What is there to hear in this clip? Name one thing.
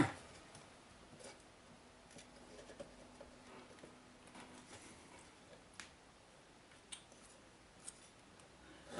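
Metal parts clink softly against a metal plate.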